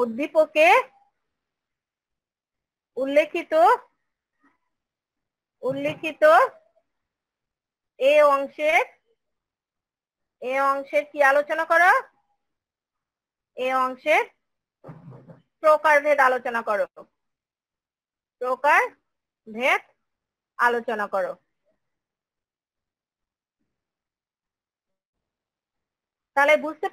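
A woman speaks calmly in short phrases with pauses, heard through an online call.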